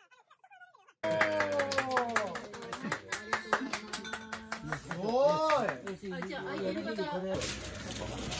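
Several men chat and laugh together nearby.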